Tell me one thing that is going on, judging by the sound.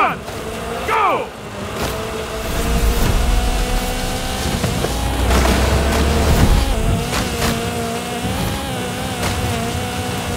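A car engine revs hard at high speed.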